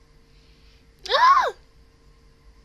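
A young woman lets out a short, sing-song exclamation close to a microphone.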